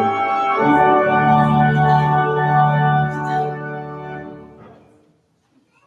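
An organ holds a chord, then fades away.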